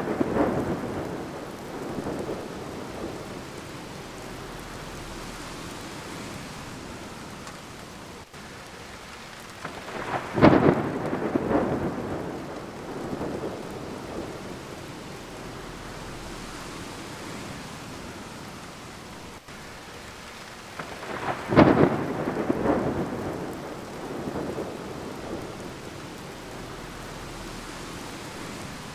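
Rain patters steadily against a window pane.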